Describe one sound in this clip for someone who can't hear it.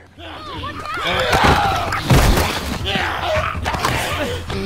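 A young girl shouts in panic.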